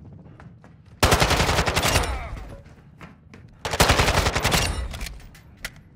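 A rifle fires in rapid bursts, ringing loudly indoors.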